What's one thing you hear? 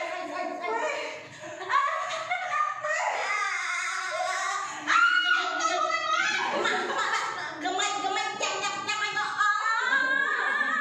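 A young woman speaks with animation and exclaims loudly close by.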